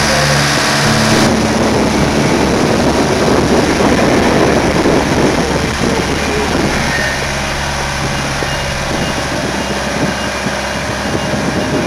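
A heavy truck's diesel engine rumbles.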